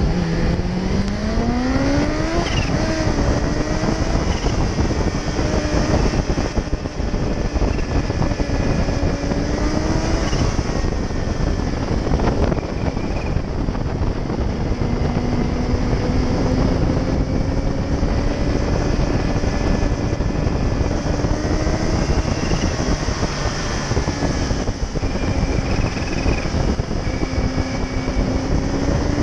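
A motorcycle engine revs and hums steadily as it rides along.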